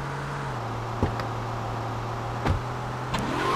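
A car door opens and shuts.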